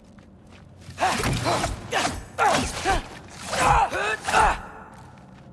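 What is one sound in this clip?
Heavy blows clash and thud in a fight.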